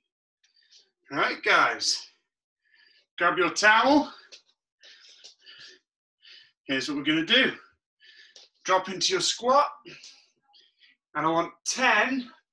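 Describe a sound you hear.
A man speaks loudly and with energy in short bursts, close to the microphone.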